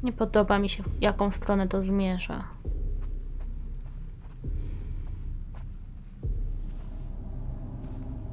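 Footsteps walk softly across a floor.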